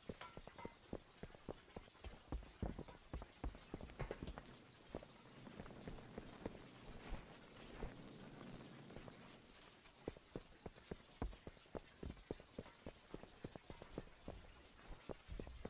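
Quick footsteps patter on a hard stone floor.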